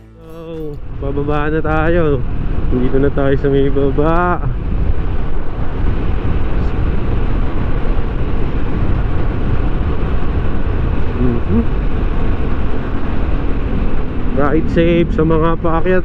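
A scooter engine hums steadily while riding.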